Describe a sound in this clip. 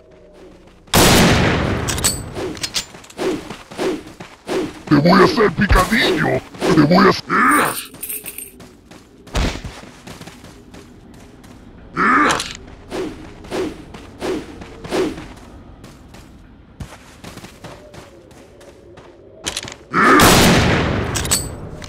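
A rifle fires loud shots that echo.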